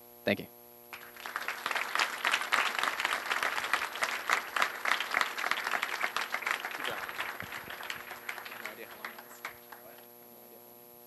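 An audience applauds in a large room, then the clapping fades.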